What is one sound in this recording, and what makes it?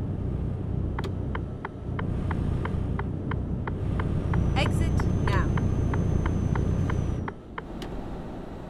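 A turn signal ticks evenly.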